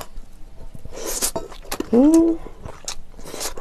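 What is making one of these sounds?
A young woman slurps broth from a bowl.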